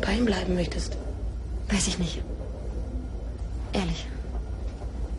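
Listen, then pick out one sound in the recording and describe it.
A young woman speaks calmly in short phrases nearby.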